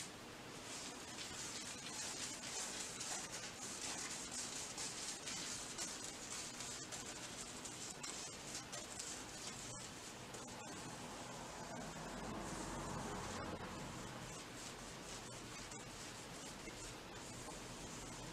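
A paintbrush swishes softly against a wall.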